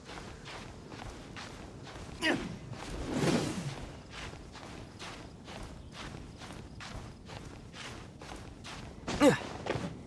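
A game character's hands and feet scrape rhythmically against rock while climbing.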